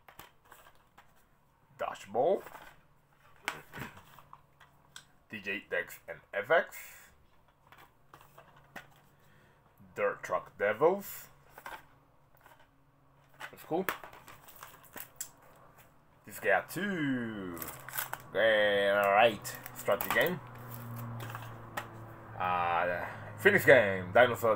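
Plastic game cases clatter in a man's hands.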